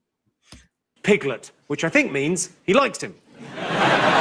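A man speaks to an audience through a microphone, with lively timing.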